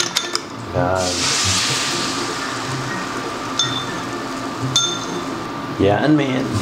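Beaten eggs sizzle in a hot pan.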